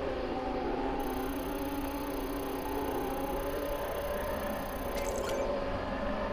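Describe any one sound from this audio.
A scanner gives off a high steady tone, then stops.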